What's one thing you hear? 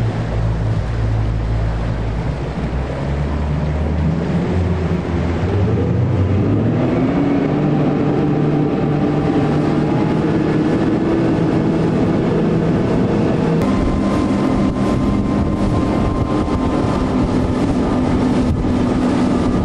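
Water hisses and sprays under a fast racing sailboat.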